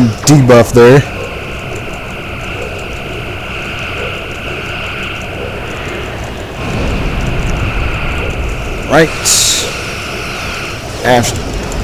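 A spaceship's engine hums steadily.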